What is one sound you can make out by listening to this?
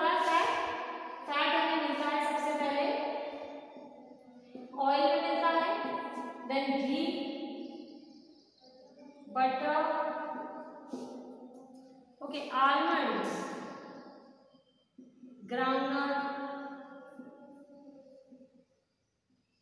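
A woman speaks clearly and slowly, as if teaching, close by.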